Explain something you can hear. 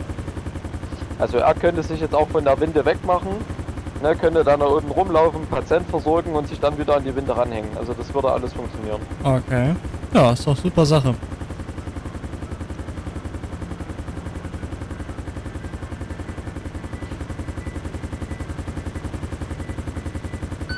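A helicopter's rotor thumps steadily as it hovers low.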